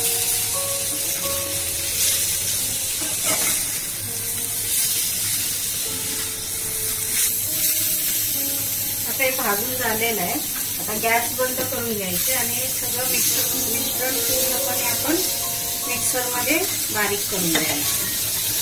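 A metal spatula scrapes and stirs against a pan.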